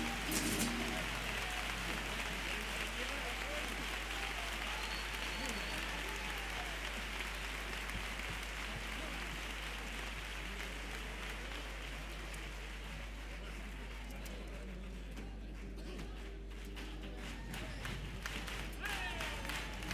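A large group of men and women sings together on a stage, heard from a distance in a large hall.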